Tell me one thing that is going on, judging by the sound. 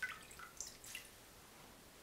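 Water drips and splashes into a bowl.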